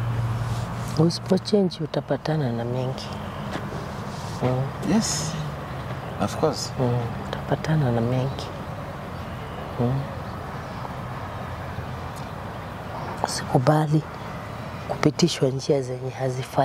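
A young man speaks calmly and closely.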